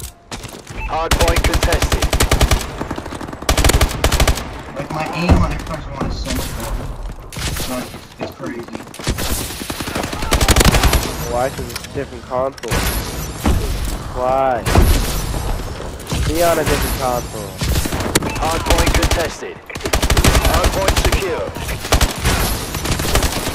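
Rapid automatic gunfire rattles in bursts.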